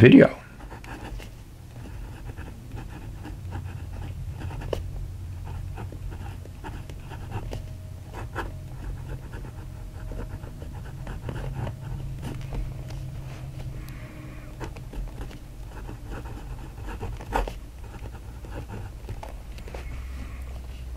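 A pen nib scratches softly across paper.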